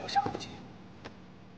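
A man cries out sharply nearby.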